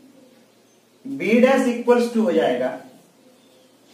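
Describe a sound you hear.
A young man speaks loudly and clearly, close by.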